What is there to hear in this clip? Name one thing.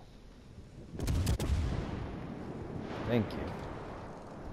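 Heavy ship guns fire in loud booming blasts.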